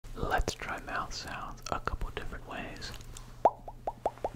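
A man whispers close into a microphone.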